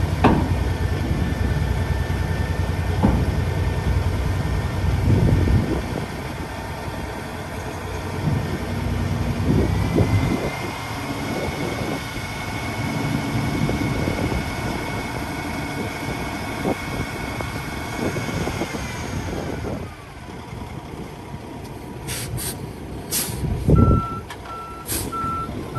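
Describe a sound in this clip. A diesel truck engine idles and rumbles steadily.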